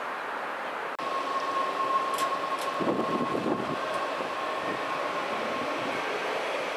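A train arrives slowly with a steady electric hum.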